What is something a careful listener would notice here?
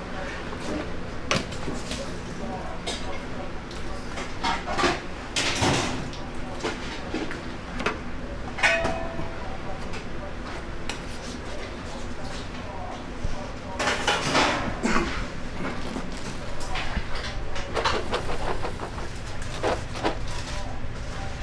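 Metal trays clatter and scrape against each other.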